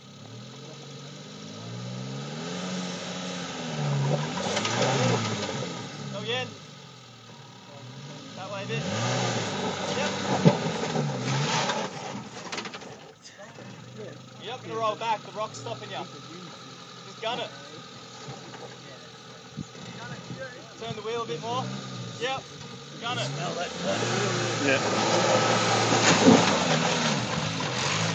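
A small engine revs and strains as a vehicle climbs over rocks.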